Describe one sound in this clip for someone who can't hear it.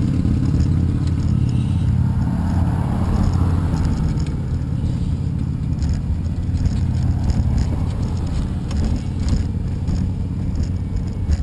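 Wind rumbles loudly and steadily across a microphone outdoors.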